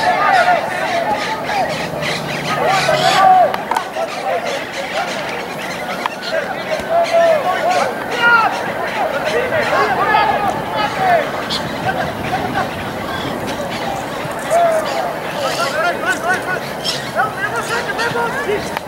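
Men shout and call out across an open field.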